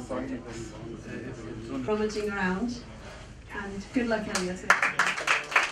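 A woman speaks into a microphone in a room.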